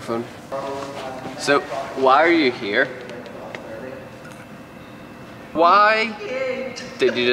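Young men talk and laugh close to a microphone in a large echoing hall.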